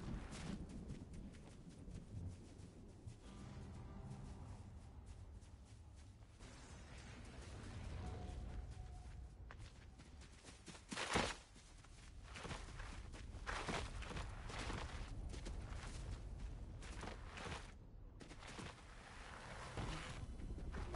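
Footsteps rustle quickly through grass.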